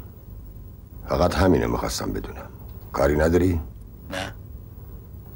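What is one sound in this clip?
An elderly man speaks gravely on a phone.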